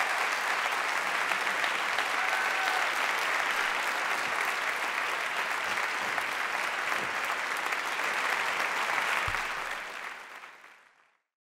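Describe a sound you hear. A large audience applauds in an echoing hall, then fades away.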